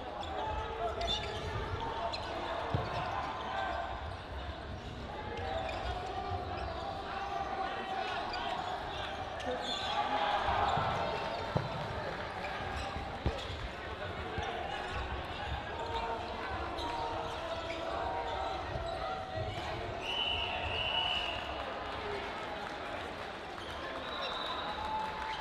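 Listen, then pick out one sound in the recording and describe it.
A crowd of players and spectators chatters and calls out in a large echoing hall.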